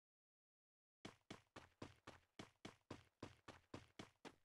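Footsteps run steadily over ground.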